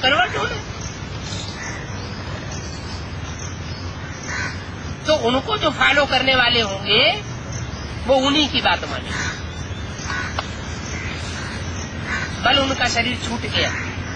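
An elderly man speaks earnestly, close by, in bursts with pauses.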